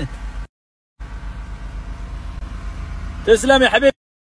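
A car engine idles with a low hum.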